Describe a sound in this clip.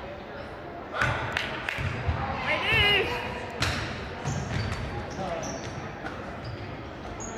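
A basketball bounces on a hard floor in an echoing gym.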